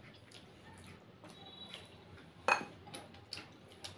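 A woman crunches a crisp fried piece of food.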